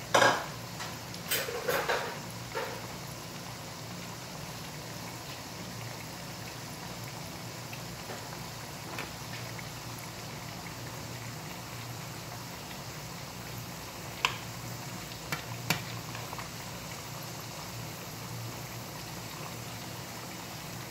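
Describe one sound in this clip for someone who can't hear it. Hot oil sizzles and crackles steadily in a frying pan.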